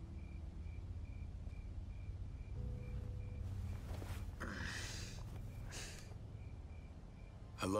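A man drinks from a can.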